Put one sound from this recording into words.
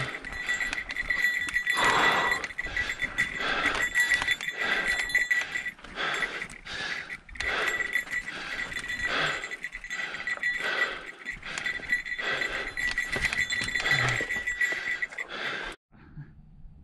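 A mountain bike rattles and clatters over a rocky trail.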